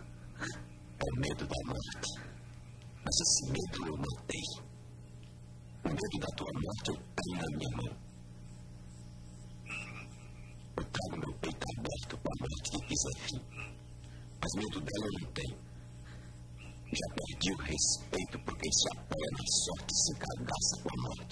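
A man speaks slowly and intensely, close by.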